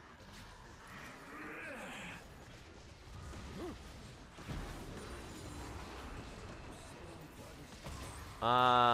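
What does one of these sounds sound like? Magical spell effects whoosh and crackle in a video game battle.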